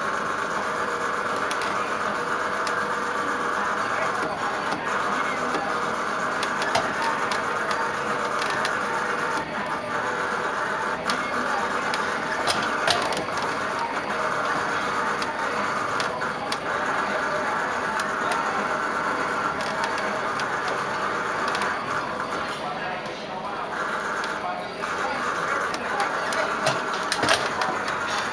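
An arcade racing game plays loud engine roars and music from its speakers.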